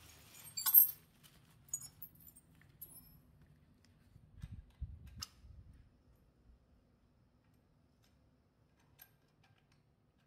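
Small metal parts clink and rattle.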